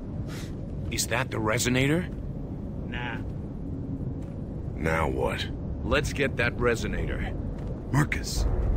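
A man speaks in a deep, gruff voice.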